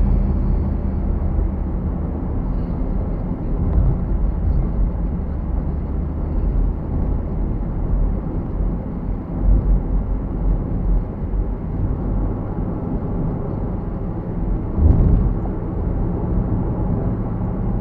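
A car's engine hums steadily from inside the cabin.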